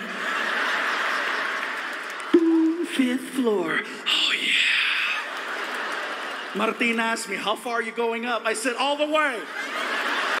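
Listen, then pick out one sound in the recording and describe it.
An audience laughs in a large hall.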